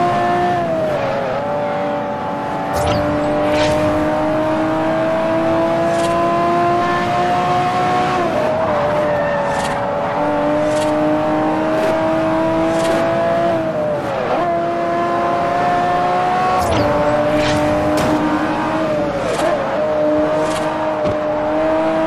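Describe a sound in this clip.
A sports car engine roars at high revs, dropping in pitch at each gear change.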